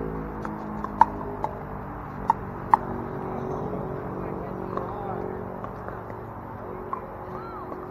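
Paddles pop sharply against a plastic ball, back and forth.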